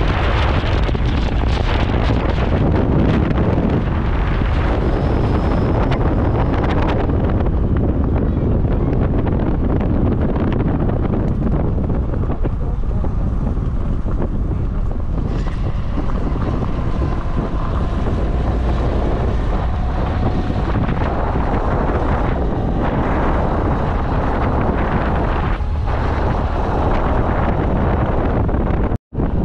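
Strong wind rushes past loudly.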